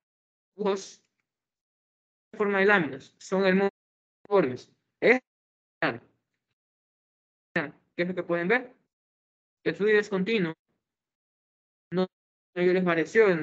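A man talks with animation, heard through a microphone, in short bursts with pauses.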